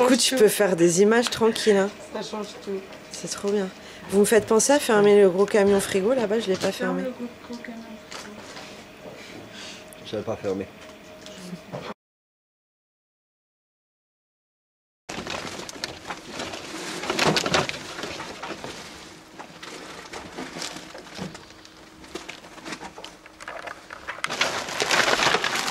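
Plastic-wrapped vegetables rustle as hands sort them.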